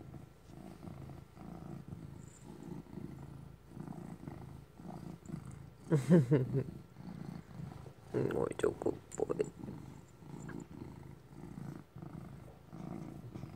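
A cat purrs steadily up close.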